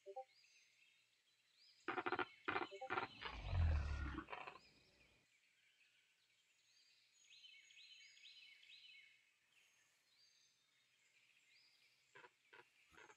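Small animals squeak and chirp softly.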